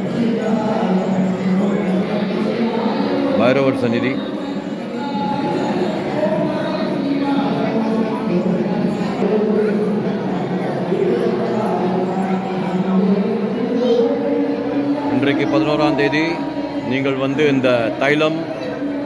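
Many voices chant together in a large echoing hall.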